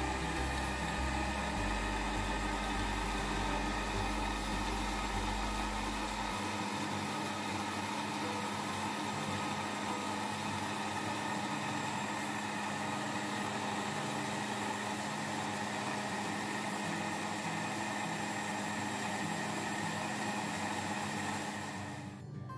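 A blender motor whirs loudly and steadily, churning liquid.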